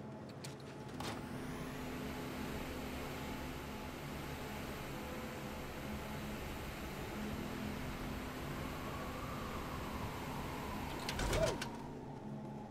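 A hover vehicle hums steadily as it glides along.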